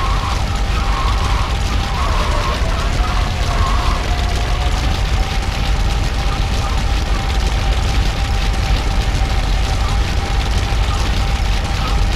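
A forklift engine hums steadily as it drives.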